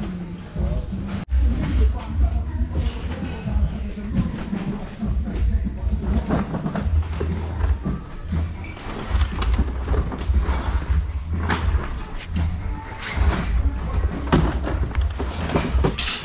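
Clothes rustle as gloved hands sort through a pile of garments.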